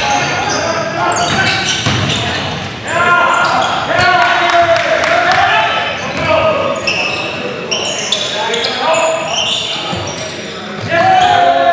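Basketball players' sneakers squeak on a hardwood gym floor in a large echoing hall.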